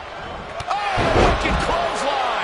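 A heavy body slams onto a wrestling mat with a loud thud.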